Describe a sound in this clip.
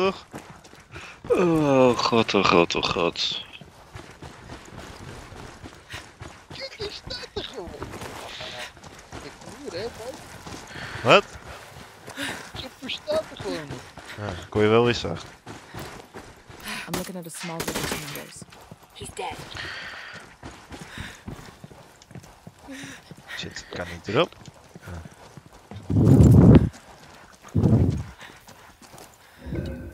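Footsteps crunch softly on rough ground.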